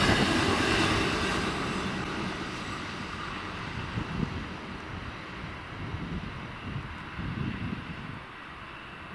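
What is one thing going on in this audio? An electric train rumbles away along the tracks and fades into the distance.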